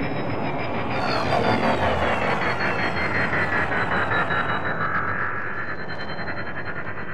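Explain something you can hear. Laser guns fire in a rapid, pulsing stream.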